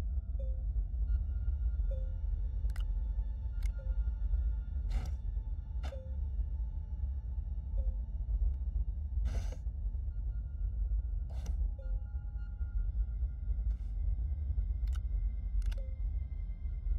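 Short electronic clicks and blips sound now and then.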